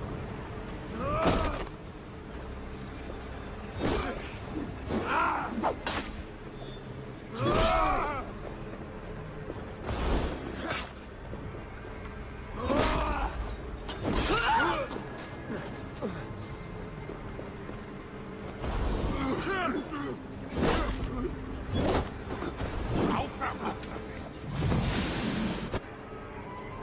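Blades clash and thud in a close fight.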